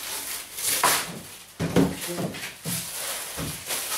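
A roll of wallpaper rustles and crinkles as it is unrolled.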